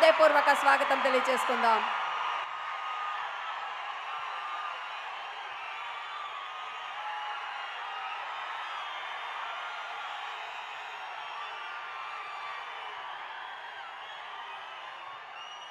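A large crowd cheers and shouts loudly in the open air.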